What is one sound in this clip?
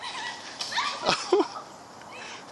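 A bike crashes onto a dirt trail with a thud.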